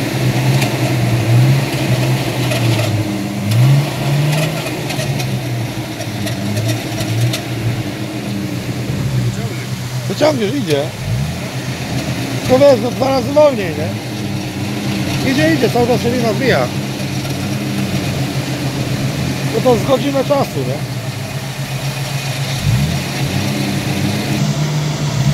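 A car engine drones low and revs now and then.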